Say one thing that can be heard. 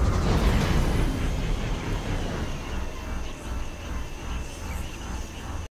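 A hovering craft's engine quietens to a low hum as it slows down.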